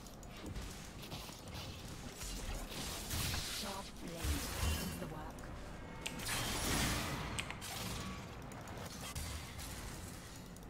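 Game sound effects of spells and hits burst and clash.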